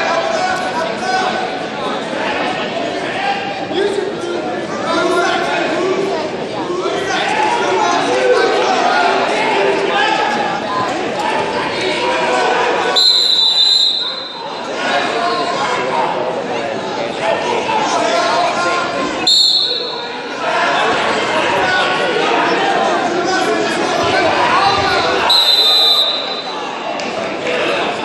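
A crowd of men and women talks and cheers in a large echoing hall.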